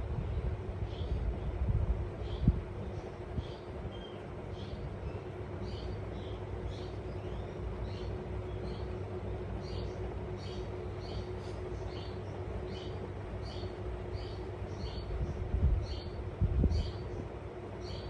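A small parrot chirps softly in short, repeated high notes.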